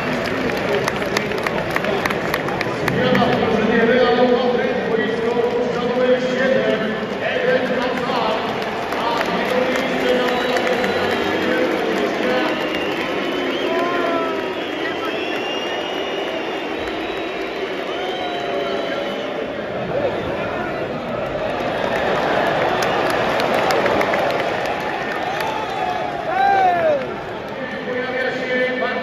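A large stadium crowd chants and sings loudly all around.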